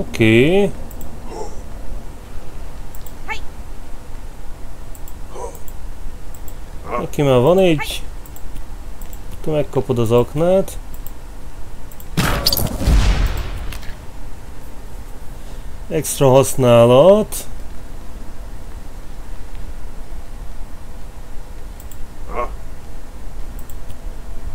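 Short game menu sounds chime as options are selected.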